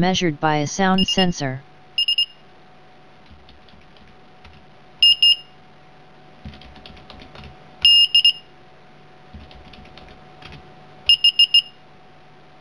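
An electronic buzzer beeps in short, high bursts.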